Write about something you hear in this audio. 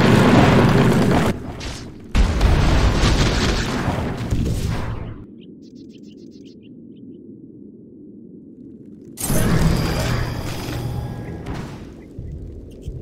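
Magical blasts whoosh and rumble loudly in bursts.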